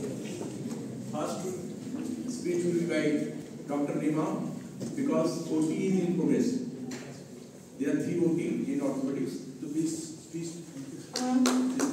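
A man speaks calmly into a microphone over a loudspeaker in an echoing hall.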